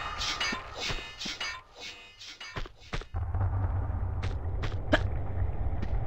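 Footsteps run on a stone floor.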